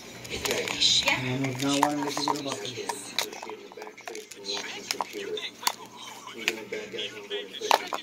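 Plastic containers knock and clatter against a hard surface.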